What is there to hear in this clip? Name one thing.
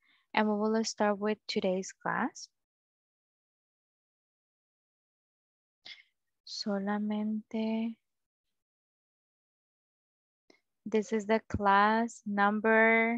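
A young woman speaks with animation over an online call, in short bursts with pauses.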